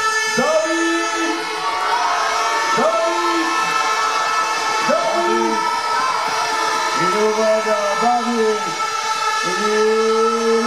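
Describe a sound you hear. A crowd chants together loudly.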